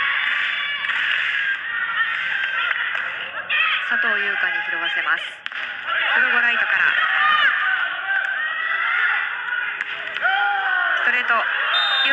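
A volleyball is struck hard with a hand.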